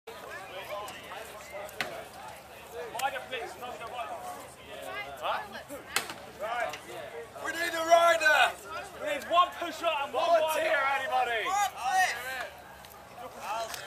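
Young men talk and shout loudly nearby.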